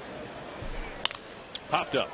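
A baseball bat cracks against a ball.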